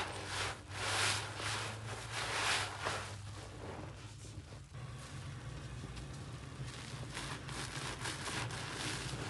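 Soap bubbles crackle and fizz.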